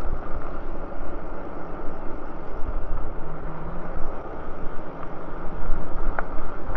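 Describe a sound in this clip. An electric bike's tyres hum on pavement.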